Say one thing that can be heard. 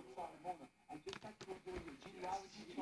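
A plastic toy clatters against the floor.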